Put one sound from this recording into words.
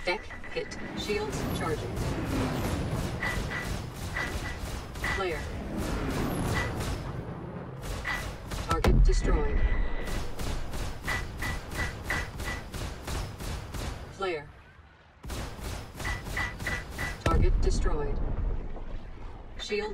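A spacecraft's guns fire in rapid bursts.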